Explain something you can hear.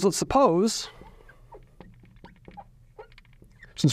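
A marker squeaks on a glass board.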